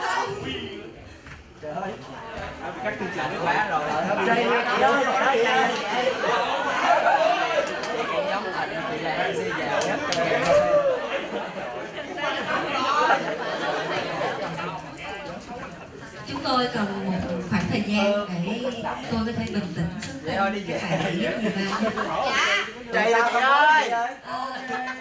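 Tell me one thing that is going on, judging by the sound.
A young woman speaks into a microphone over loudspeakers in a large hall.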